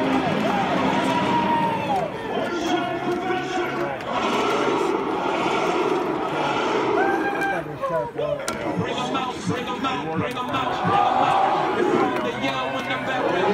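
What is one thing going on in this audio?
Players' hands slap together in high fives.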